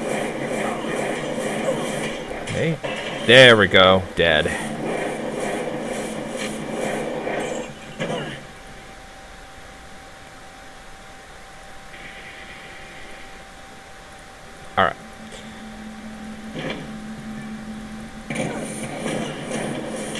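Fiery magic blasts roar and crackle in a rapid stream.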